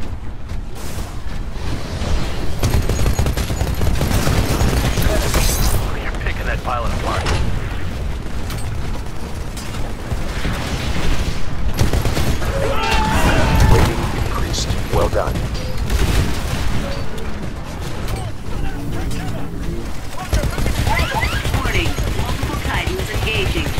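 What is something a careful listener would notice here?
A heavy machine gun fires in loud, rapid bursts.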